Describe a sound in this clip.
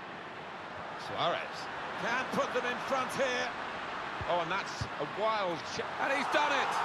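A stadium crowd roars as an attack nears the goal.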